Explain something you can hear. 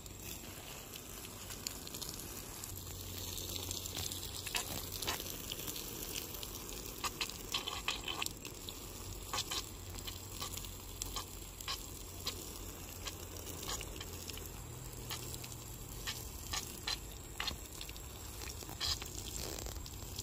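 Water from a hose splashes onto soil.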